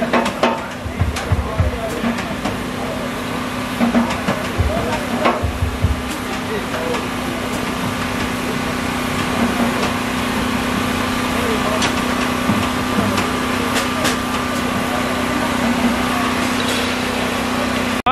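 A live band plays music outdoors.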